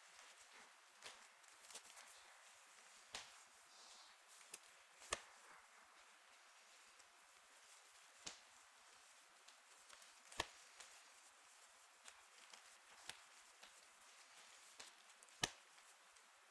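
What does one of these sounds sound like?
Cards tap and click against a table.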